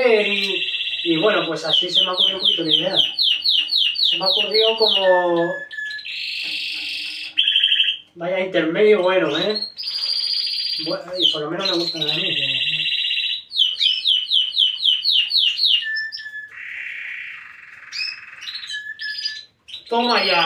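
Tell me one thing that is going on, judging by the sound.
Small caged birds sing and chirp loudly.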